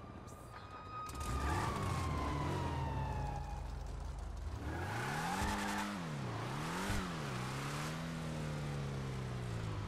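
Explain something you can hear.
A car engine revs and roars, rising and falling in pitch.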